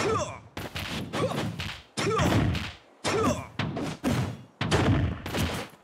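A sword swishes sharply through the air.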